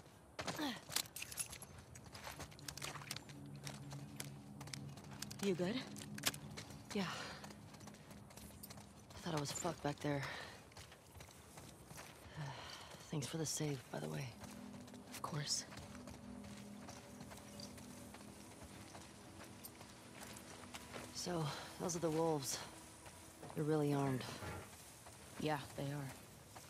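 Footsteps crunch over grass and wet pavement.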